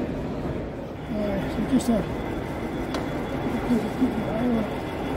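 A model train rumbles along the track.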